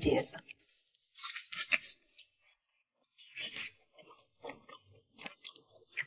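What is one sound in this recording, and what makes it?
A young woman chews food with soft, wet mouth sounds.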